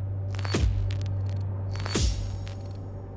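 A menu click sounds sharply, twice.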